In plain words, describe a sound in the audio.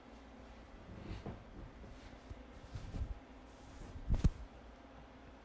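Couch cushions rustle and thump as a man shifts his seat.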